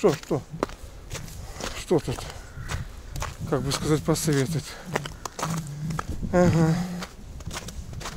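An elderly man talks calmly close by, outdoors.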